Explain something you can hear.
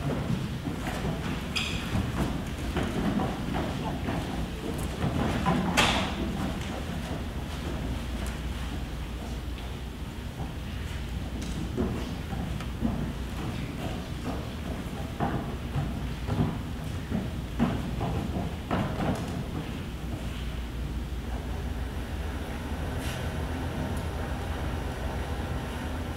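A group of children speak together in a large echoing hall.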